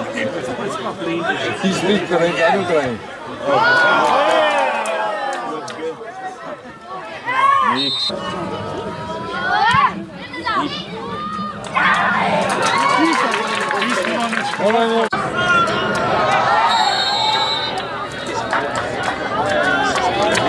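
Spectators nearby shout and chatter loudly outdoors.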